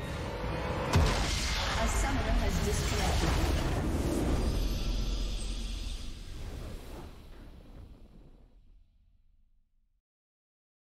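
A triumphant orchestral fanfare swells and then fades out.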